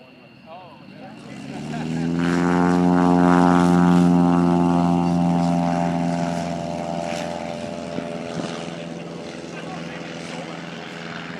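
A propeller plane's engine roars loudly as it speeds down a runway, then slowly fades into the distance.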